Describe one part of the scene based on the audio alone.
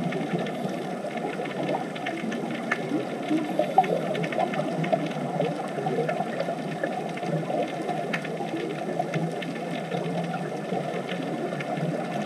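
Air bubbles from divers' breathing gurgle and rumble steadily underwater.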